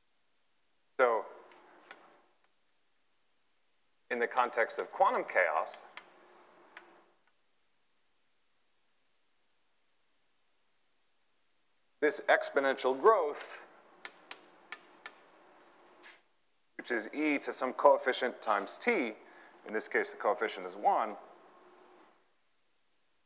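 A young man speaks calmly, lecturing.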